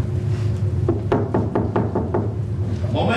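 A man knocks on a wooden door.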